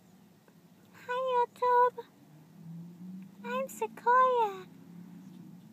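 A kitten meows loudly up close.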